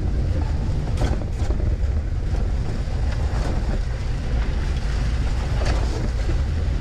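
Loose stones knock and clatter against the underside of a vehicle.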